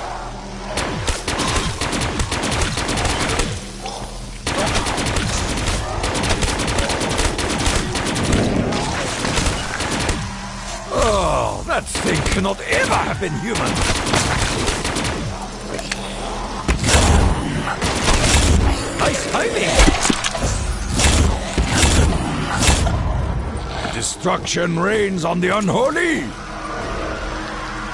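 Rifle fire crackles in rapid bursts.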